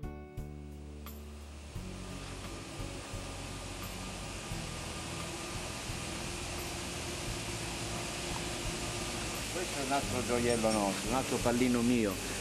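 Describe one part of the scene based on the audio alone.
A locomotive engine rumbles low and steadily.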